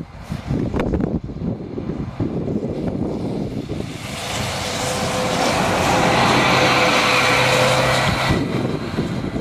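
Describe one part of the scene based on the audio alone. A double-decker bus engine roars as the bus approaches and passes close by.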